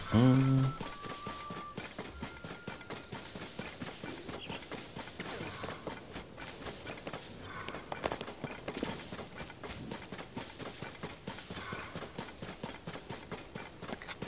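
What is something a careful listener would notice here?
Footsteps swish through tall grass at a quick pace.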